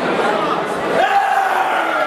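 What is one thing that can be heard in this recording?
A man shouts excitedly nearby.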